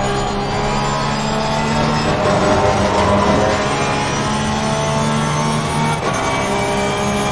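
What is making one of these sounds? A racing car engine roars steadily from inside the cockpit.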